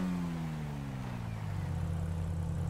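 A car speeds past with its engine dropping in pitch.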